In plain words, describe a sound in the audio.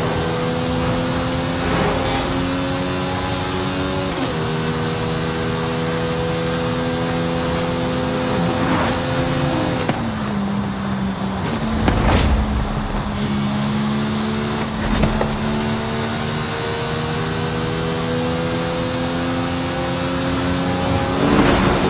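A sports car engine roars at high speed, its pitch climbing slowly and dropping with gear shifts.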